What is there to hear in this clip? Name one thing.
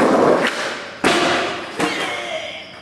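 A skateboard clacks sharply against the ground.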